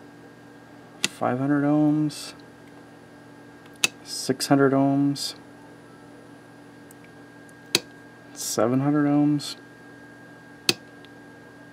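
A rotary switch clicks sharply from time to time.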